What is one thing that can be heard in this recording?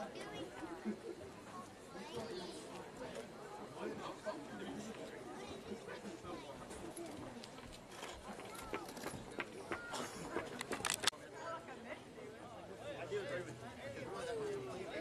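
A crowd of young people chatter and call out across an open field.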